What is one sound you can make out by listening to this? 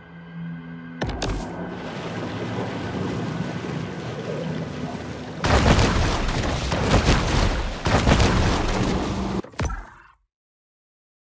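Water rushes and churns as a shark swims fast through waves.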